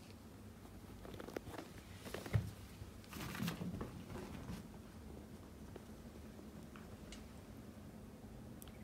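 A small dog's paws patter and scuffle on a carpet.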